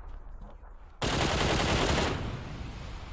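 Gunfire rattles loudly in a video game.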